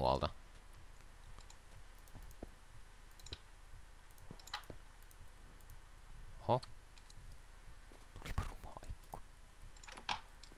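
Blocks are placed with soft, short knocks.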